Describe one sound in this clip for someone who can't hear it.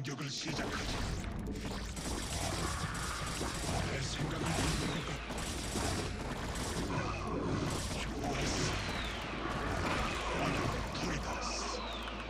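Game battle sounds crackle and burst.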